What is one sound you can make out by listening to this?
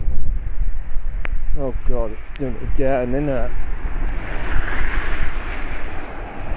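A car drives by on a wet road, its tyres hissing on the water.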